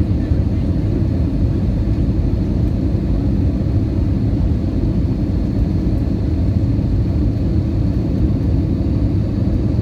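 A jet engine roars steadily, heard from inside an airliner cabin.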